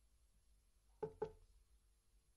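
A man knocks twice on a wooden door.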